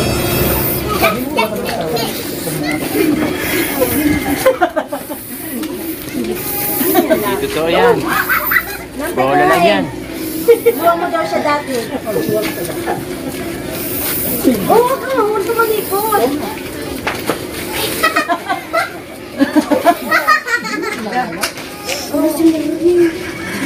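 Young women talk and laugh close by, outdoors.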